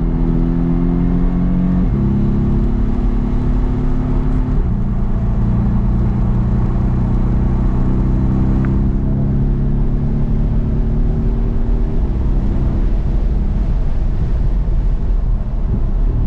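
A car engine drones steadily from inside the cabin, shifting pitch as the gears change.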